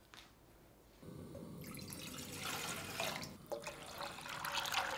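Water pours into a pot.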